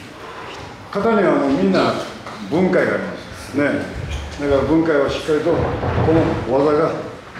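An elderly man speaks calmly and clearly close by.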